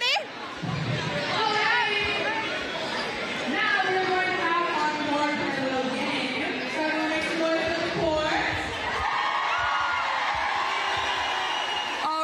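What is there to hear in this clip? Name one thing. A young woman speaks with animation into a microphone in a large echoing hall.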